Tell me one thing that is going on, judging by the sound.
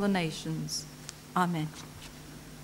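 An elderly woman speaks into a microphone.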